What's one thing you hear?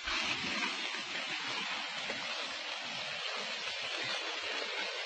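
An elephant slides down a muddy slope with a rough scraping rustle.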